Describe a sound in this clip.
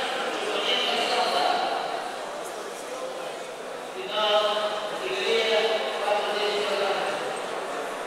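A man calls out loudly across an echoing hall.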